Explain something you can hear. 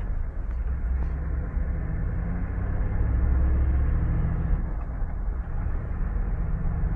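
A car's tyres roll steadily over an asphalt road.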